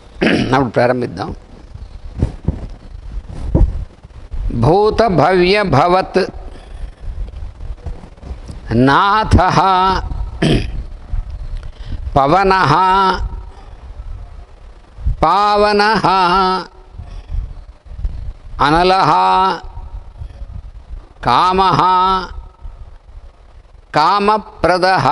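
An elderly man chants slowly into a microphone in a reverberant room.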